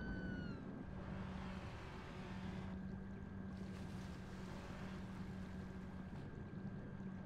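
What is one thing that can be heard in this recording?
Waves splash and wash at the water's surface.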